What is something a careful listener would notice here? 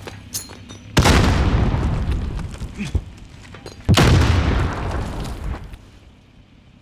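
Loud explosions boom nearby and rumble away.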